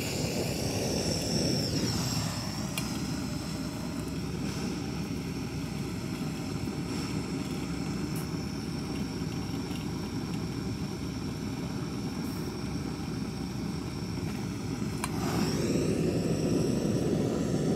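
A hose nozzle hisses close by.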